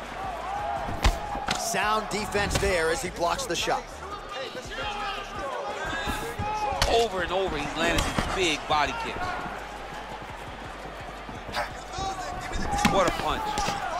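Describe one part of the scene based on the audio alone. Kicks and punches land with sharp thuds.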